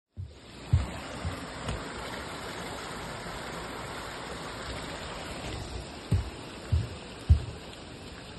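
Footsteps thud slowly on a wet path.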